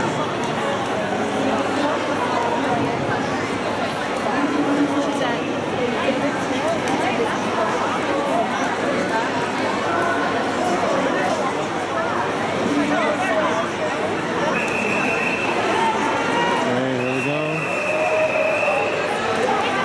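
A large crowd chatters and cheers loudly in a big echoing hall.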